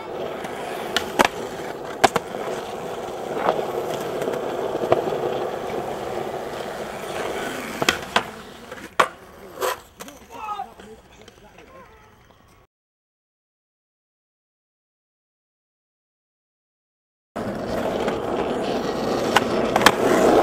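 A skateboard tail snaps against the ground.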